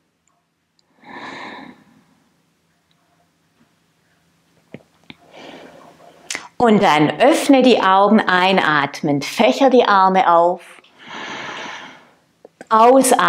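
A woman breathes in and out deeply.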